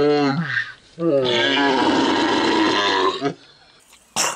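A man groans loudly nearby.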